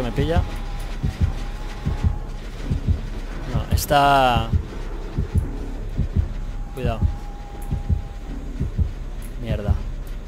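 Footsteps thud quickly and steadily on soft ground.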